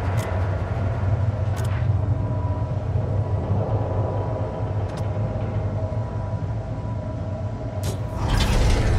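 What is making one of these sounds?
Menu selections click sharply a few times.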